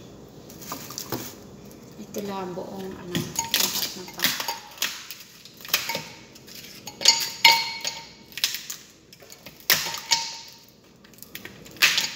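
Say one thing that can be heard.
A plastic ice tray is twisted and cracks.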